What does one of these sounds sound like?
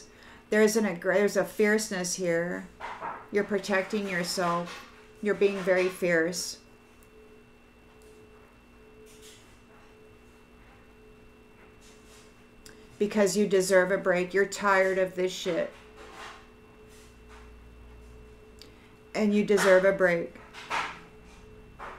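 A middle-aged woman speaks calmly and close to the microphone, pausing between phrases.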